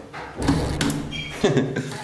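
A push button clicks.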